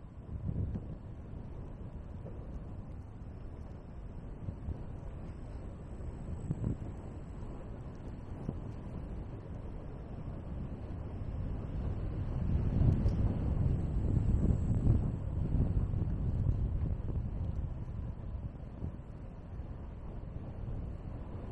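Tyres roll over a paved path.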